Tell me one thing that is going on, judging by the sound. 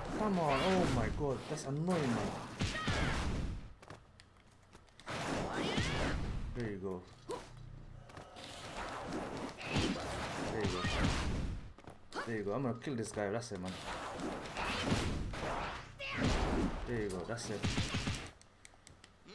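Game blows thud and crash in bursts.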